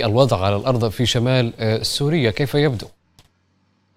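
A man speaks clearly and steadily into a microphone.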